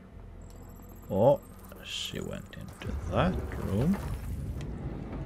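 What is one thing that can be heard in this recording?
A young man speaks briefly into a close microphone.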